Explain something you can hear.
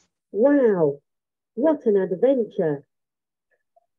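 A child speaks briefly and animatedly over an online call.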